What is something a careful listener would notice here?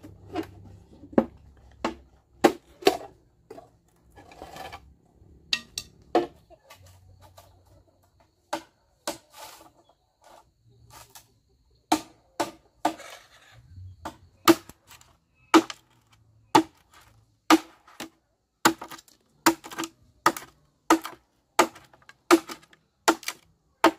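A machete chops and splits bamboo in sharp, hollow knocks.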